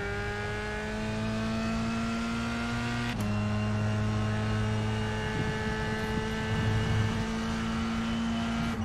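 A racing car engine whines steadily and slowly rises in pitch.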